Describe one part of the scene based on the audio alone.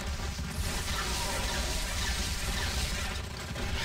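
Fiery explosions boom and roar.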